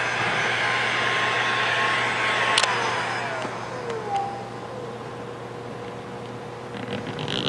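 A heat gun blows with a steady rushing hiss.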